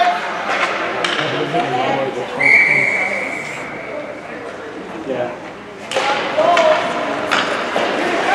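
Hockey sticks clack against the puck and the boards.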